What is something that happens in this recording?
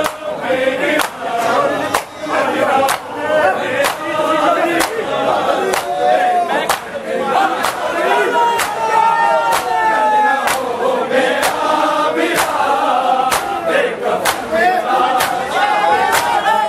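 A crowd of men chants loudly together.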